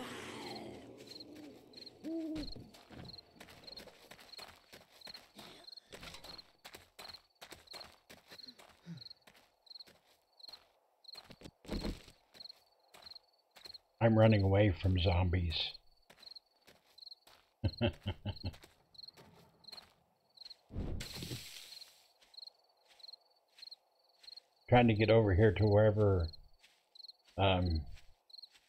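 Footsteps crunch steadily over gravel and grass.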